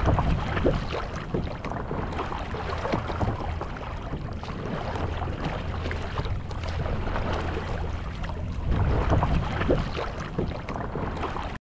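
A paddle splashes and dips into water in steady strokes.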